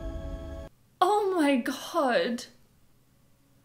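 A young woman speaks with alarm close by.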